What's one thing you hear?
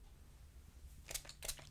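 A hairspray can sprays with a short hiss.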